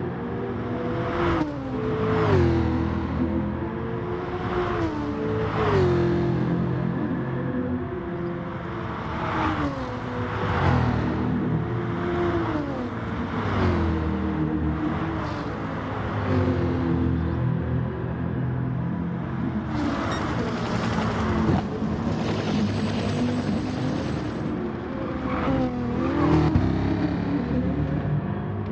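A racing car engine roars, revving up and dropping as it shifts gears.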